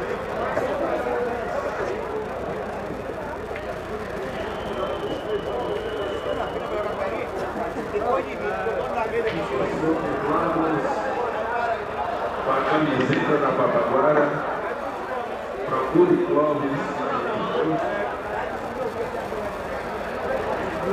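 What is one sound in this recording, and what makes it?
A crowd of people chatters around the room.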